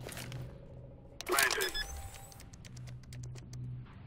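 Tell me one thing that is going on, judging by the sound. A bomb's keypad beeps as buttons are pressed.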